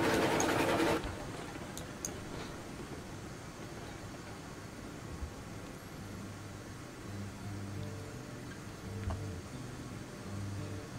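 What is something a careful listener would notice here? A steam engine idles with a low rumble.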